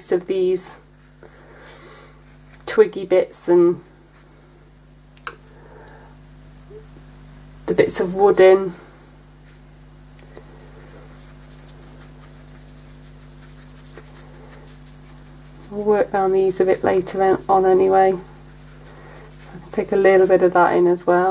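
A paintbrush softly strokes across paper.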